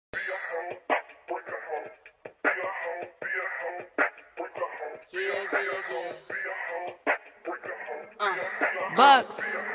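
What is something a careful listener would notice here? A young woman raps rhythmically close to a microphone.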